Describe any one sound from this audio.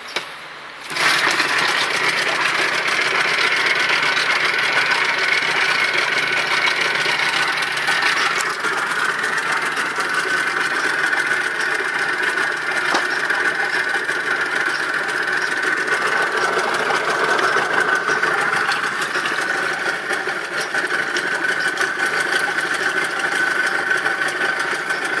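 A small outboard motor starts up and runs at a steady, buzzing idle.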